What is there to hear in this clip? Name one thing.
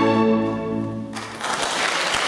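An orchestra holds a final sustained chord that cuts off.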